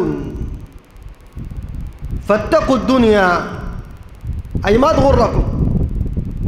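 A man preaches forcefully into a microphone, heard through loudspeakers in an echoing hall.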